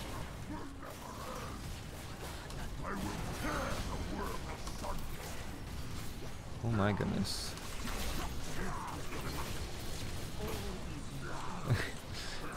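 Game sound effects of spells and hits crackle and whoosh.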